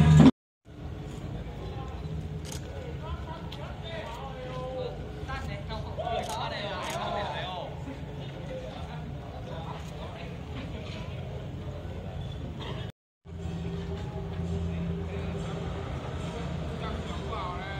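A group of men and women chat and call out at a distance outdoors.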